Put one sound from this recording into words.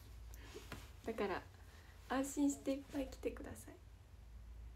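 A young woman speaks brightly and closely into a microphone.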